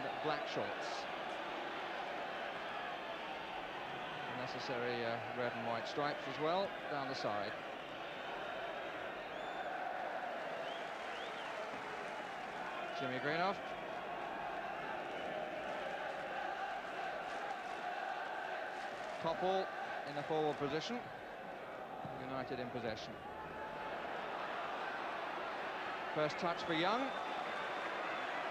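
A large stadium crowd roars and murmurs steadily throughout.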